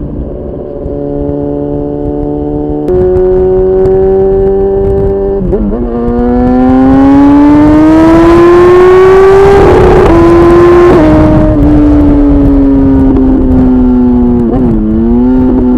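A motorcycle engine roars loudly, revving up through the gears as it accelerates.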